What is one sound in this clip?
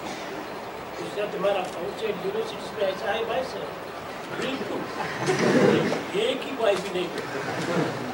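An elderly man speaks with animation, close by.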